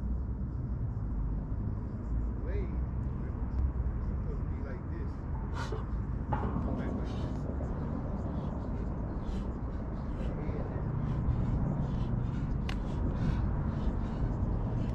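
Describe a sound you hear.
Wind blows outdoors, rumbling across the microphone.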